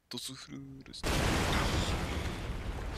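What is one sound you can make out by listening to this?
A stone wall bursts apart with a loud crash.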